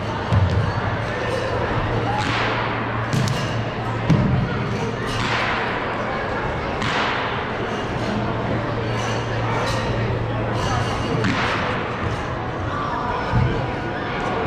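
A performer's feet thump on the wooden floor.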